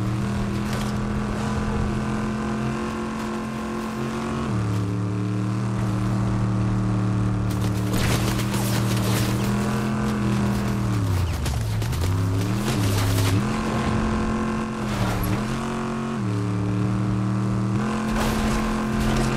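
Tyres rumble and crunch over rough dirt.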